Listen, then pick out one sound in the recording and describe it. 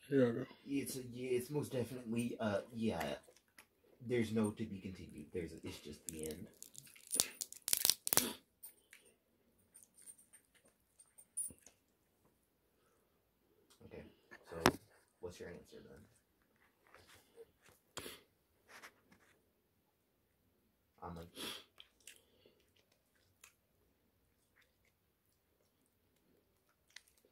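Crispy food crackles in a man's fingers.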